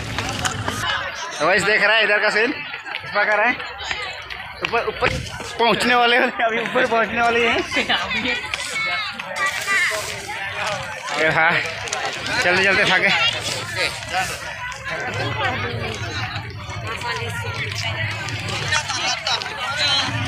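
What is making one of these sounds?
A crowd of people chatter outdoors in the background.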